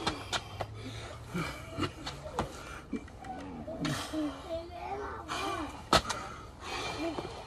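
A man talks in short bursts close by.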